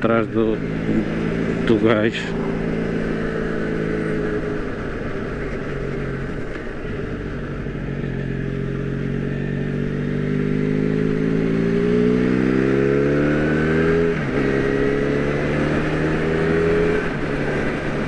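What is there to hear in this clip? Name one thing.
A motorcycle engine hums steadily and rises and falls in pitch as the rider shifts gears.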